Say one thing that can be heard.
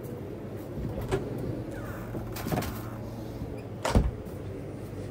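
A refrigerator door is pulled open with a thud.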